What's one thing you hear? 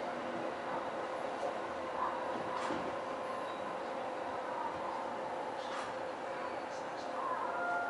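A train's motor hums with a steady whine.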